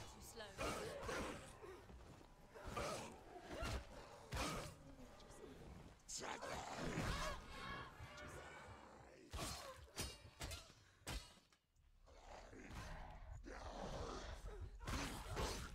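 Blades swish through the air.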